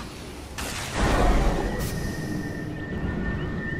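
A burst of magic booms with a deep rumble.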